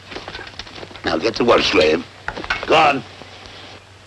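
A man speaks firmly nearby.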